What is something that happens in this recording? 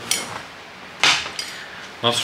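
A glass clinks on a table.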